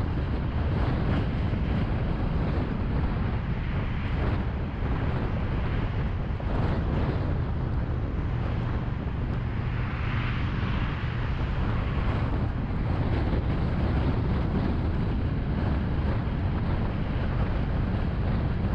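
Steady traffic roars and swooshes past on a busy highway.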